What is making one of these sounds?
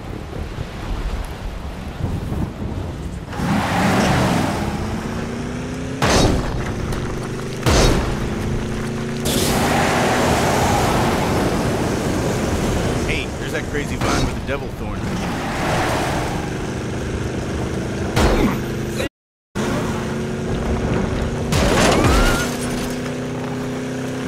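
A buggy engine whines and revs steadily.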